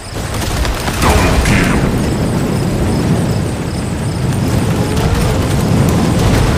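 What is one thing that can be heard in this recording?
Blasts and explosions go off in quick bursts.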